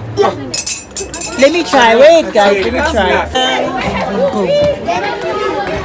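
A young woman talks excitedly close by.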